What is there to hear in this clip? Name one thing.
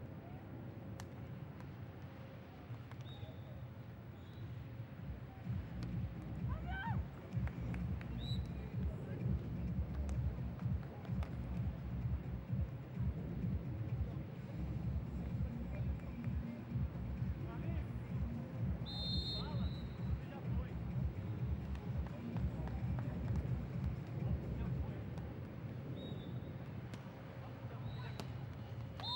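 A crowd murmurs outdoors at a distance.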